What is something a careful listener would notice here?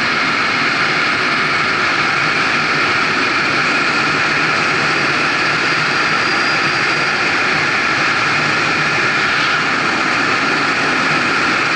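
Wind roars loudly and steadily past a fast-moving vehicle.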